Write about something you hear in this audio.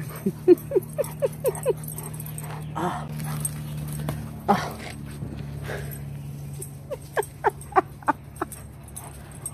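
A dog yips in short, high bursts close by.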